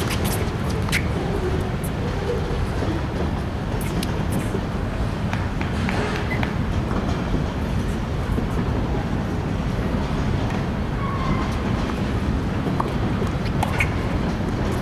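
A tennis ball is hit with a racket, with sharp pops now and then.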